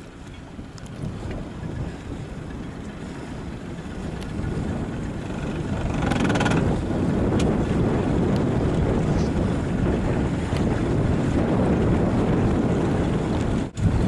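Wind gusts across open water and buffets the microphone.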